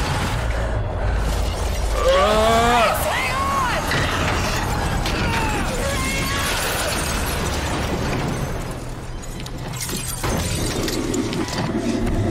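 Glass cracks and shatters.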